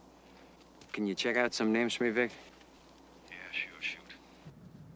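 A man speaks quietly and tensely into a phone, close by.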